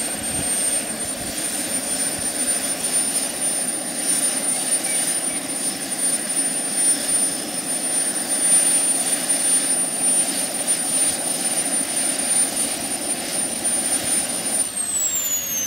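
A small model helicopter engine whines loudly and steadily.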